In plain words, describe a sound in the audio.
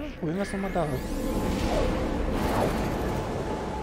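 A rushing whoosh swells as a teleport flash fills the air.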